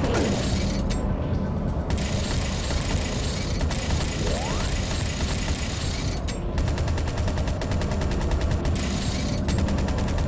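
A hovering vehicle's engine hums steadily.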